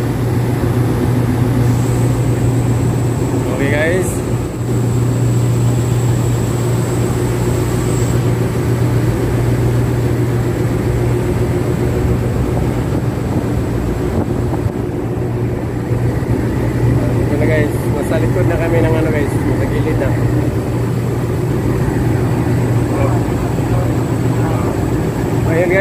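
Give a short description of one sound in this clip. A boat's diesel engine drones steadily.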